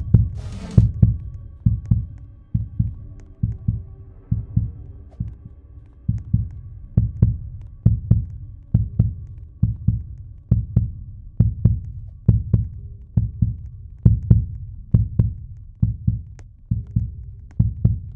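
Heavy footsteps thud in a quick, steady rhythm.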